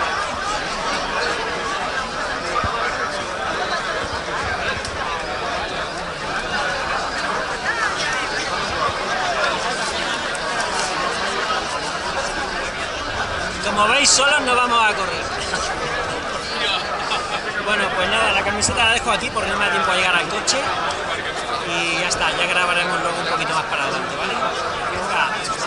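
A large outdoor crowd chatters steadily all around.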